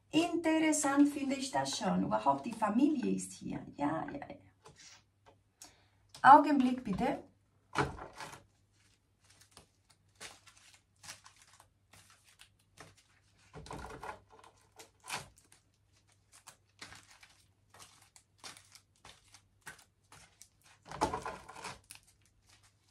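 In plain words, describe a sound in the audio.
A woman speaks softly and calmly close to a microphone.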